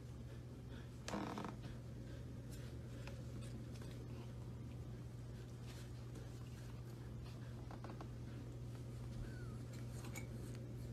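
Puppies growl and yip softly while play-fighting.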